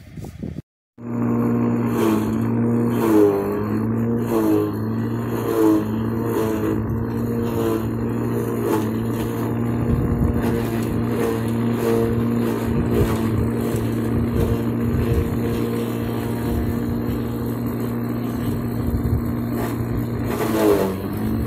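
Stalks are fed into a chopper and shredded with a grinding crunch.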